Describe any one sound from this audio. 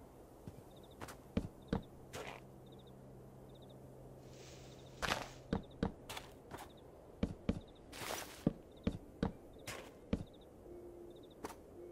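Wooden blocks knock softly as they are placed one after another.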